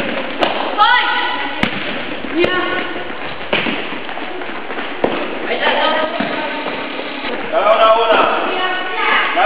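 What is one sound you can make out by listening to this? Young women shout to each other across an echoing hall.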